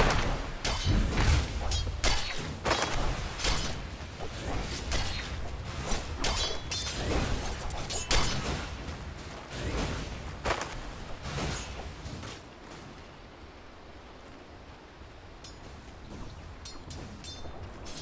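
Fantasy game battle effects clash and burst with magic and weapon hits.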